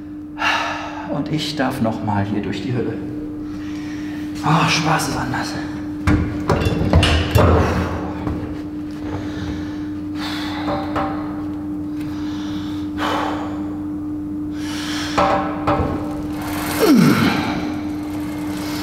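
A leg press machine's weight sled clanks as it moves.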